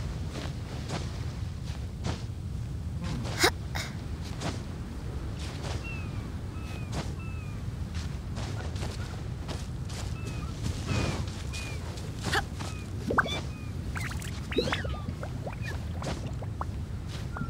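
Quick scuffing steps scrape against rock.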